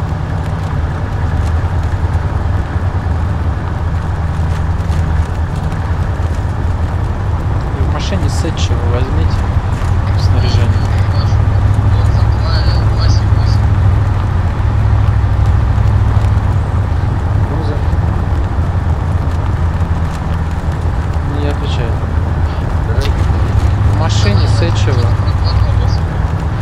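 A heavy vehicle engine rumbles steadily while driving.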